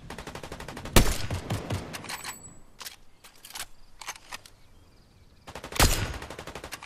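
A sniper rifle fires loud single shots that echo.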